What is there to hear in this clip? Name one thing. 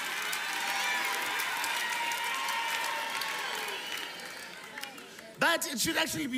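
A large audience laughs and cheers loudly.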